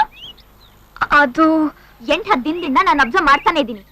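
A second young woman answers sharply, close by.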